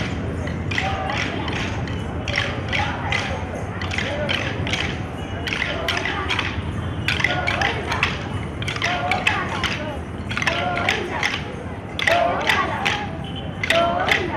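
Wooden sticks clack together in a quick, steady rhythm.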